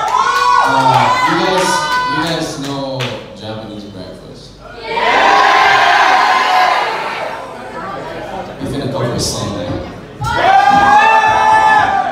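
A band plays electric guitars and drums loudly in a large echoing room.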